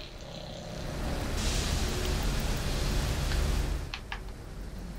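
Steam hisses loudly from a pipe.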